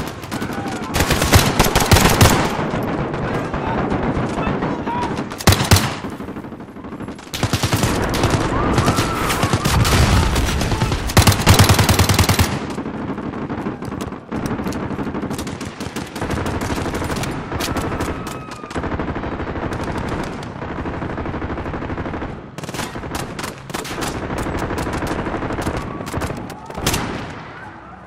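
Rapid bursts of gunfire crack loudly, over and over.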